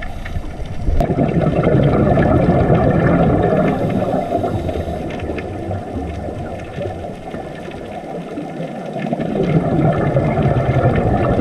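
Scuba divers' breathing bubbles gurgle and rumble underwater.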